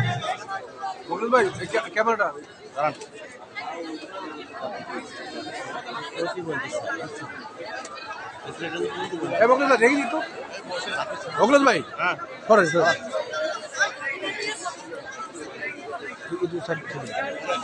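Several men talk nearby, with loud shouts now and then.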